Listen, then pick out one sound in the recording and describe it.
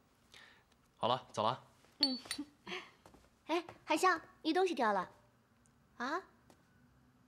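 A young woman speaks clearly and with surprise.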